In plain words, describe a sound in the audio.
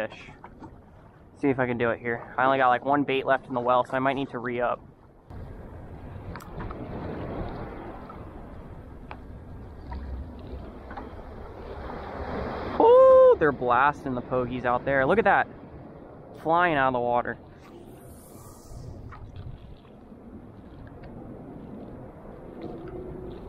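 Small waves lap and splash gently on open water.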